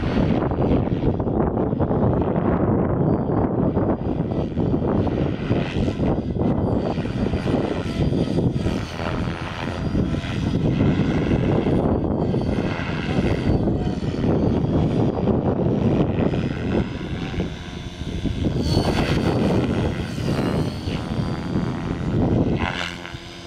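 A small model helicopter whirs overhead with a high buzzing whine.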